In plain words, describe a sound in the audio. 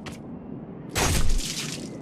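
A sword swings and strikes with a loud clash.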